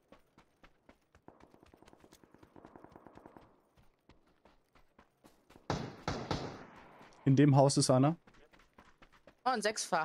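Footsteps run steadily over hard ground.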